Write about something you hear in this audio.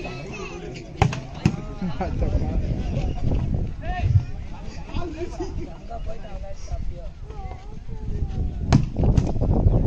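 A volleyball is struck hard by a hand.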